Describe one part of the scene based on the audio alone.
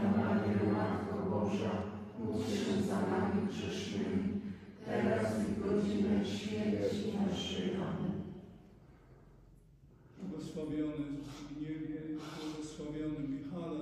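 A group of adults prays aloud together in unison, in an echoing room.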